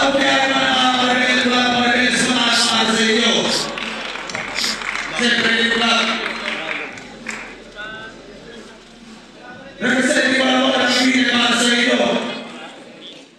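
A man raps forcefully into a microphone, heard through loudspeakers.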